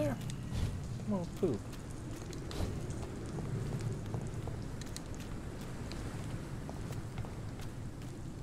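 Footsteps tread slowly on hard stone.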